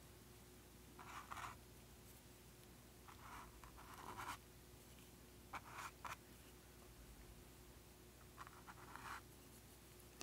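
A paintbrush brushes softly across a canvas.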